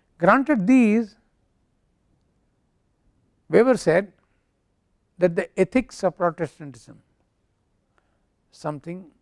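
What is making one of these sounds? An elderly man speaks calmly into a close microphone, in short bursts with pauses.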